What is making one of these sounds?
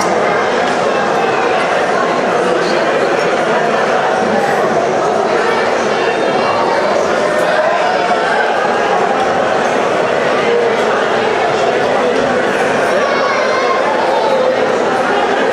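A crowd of guests chatters in a large hall.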